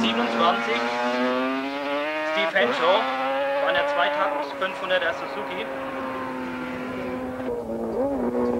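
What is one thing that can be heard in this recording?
A racing motorcycle roars past and fades into the distance.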